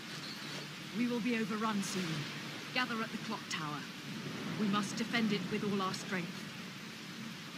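A woman speaks calmly and coldly, close by.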